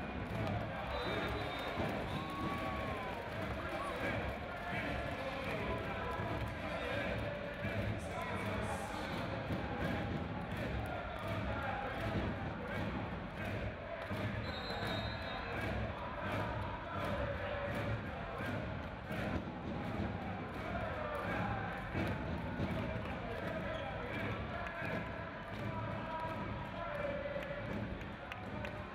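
A large indoor crowd cheers and chatters, echoing through a big hall.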